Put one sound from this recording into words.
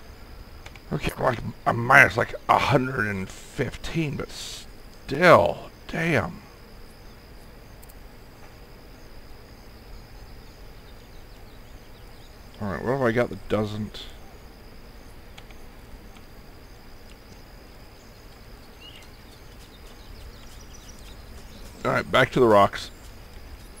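An elderly man speaks casually into a close microphone, in short bursts.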